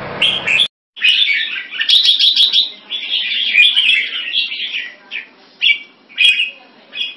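A second caged bird sings bright, rapid trills close by.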